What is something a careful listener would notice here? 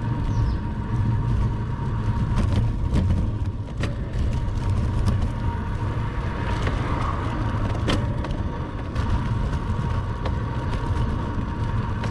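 Bicycle tyres hum steadily on smooth asphalt.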